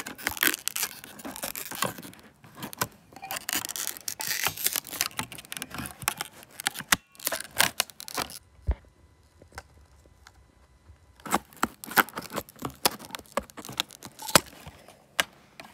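A blade scrapes and scratches across a plastic disc, close up.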